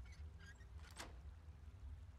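A metal lock clicks open.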